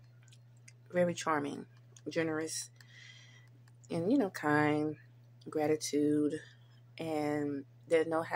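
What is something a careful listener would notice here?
A young woman talks close to a microphone, with pauses.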